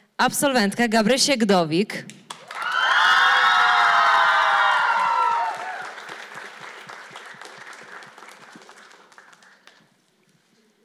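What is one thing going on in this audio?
A large mixed choir sings loudly in an echoing hall, the last chord slowly dying away.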